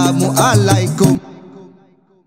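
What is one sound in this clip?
A young man sings loudly, close up.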